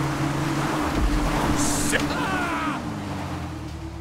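A motorbike crashes with a thud.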